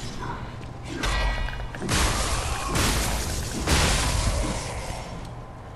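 A sword clashes and slashes in a fight.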